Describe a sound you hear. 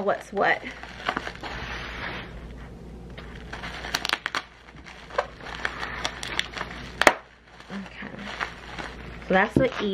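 Plastic bubble wrap crinkles and rustles.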